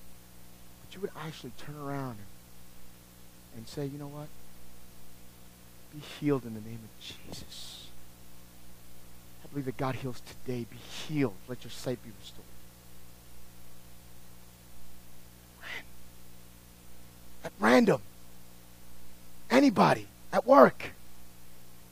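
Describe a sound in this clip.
A man speaks calmly through a microphone, echoing in a hall.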